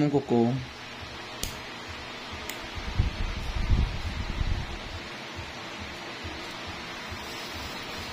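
A metal tool scrapes under a toenail.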